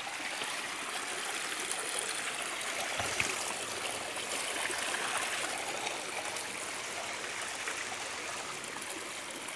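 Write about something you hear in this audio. Footsteps crunch and scrape on loose rocks.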